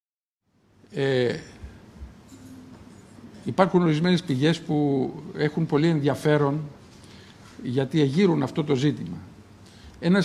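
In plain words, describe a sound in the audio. An older man speaks calmly into a microphone.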